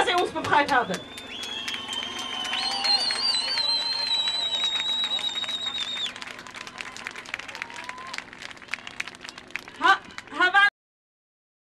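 A large crowd murmurs and chants outdoors.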